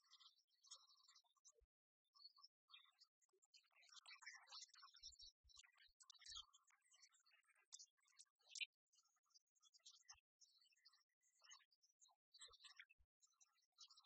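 Game pieces tap on a wooden table.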